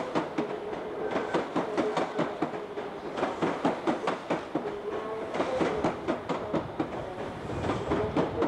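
Train wheels or brakes squeal faintly.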